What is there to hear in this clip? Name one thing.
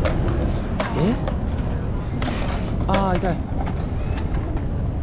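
Skateboard wheels rumble across concrete.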